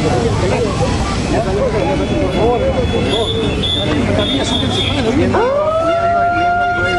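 Men talk and murmur nearby in a crowd outdoors.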